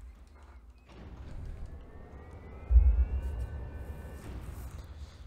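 A mechanical guardian whirs and hums as it powers up.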